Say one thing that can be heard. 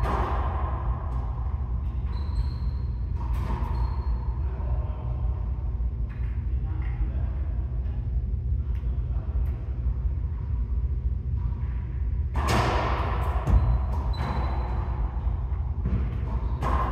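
A ball smacks against walls and rackets, echoing loudly around a hard-walled court.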